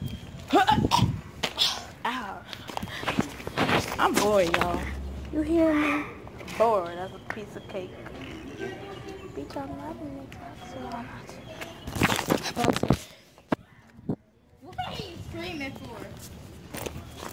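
A teenage girl talks with animation close to a phone microphone.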